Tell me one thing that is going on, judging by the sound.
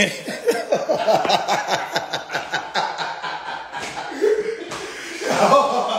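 A young man laughs loudly close to a phone microphone.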